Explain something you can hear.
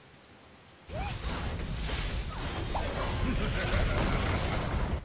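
Magic blasts and explosions crackle and boom in a video game battle.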